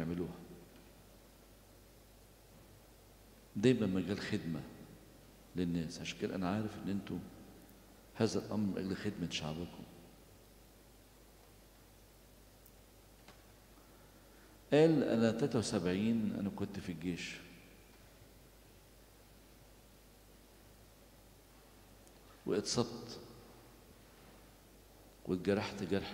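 An elderly man speaks slowly through a microphone, with long pauses, in an echoing hall.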